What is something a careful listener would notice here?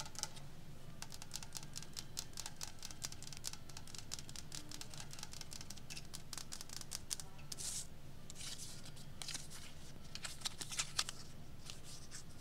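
Long fingernails tap and click on a wooden box.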